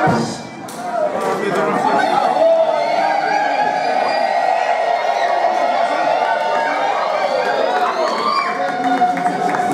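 A brass band plays a tune.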